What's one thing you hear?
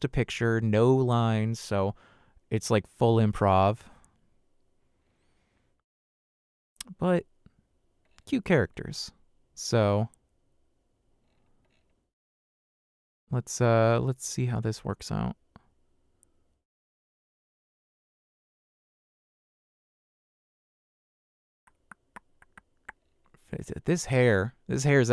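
A man talks casually into a close microphone, in bursts with pauses.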